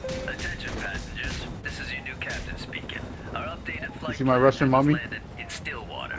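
A man speaks calmly over a loudspeaker.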